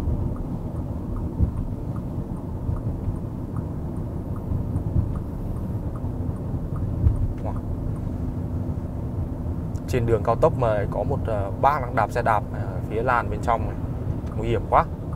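Tyres roll on the road with a low rumble.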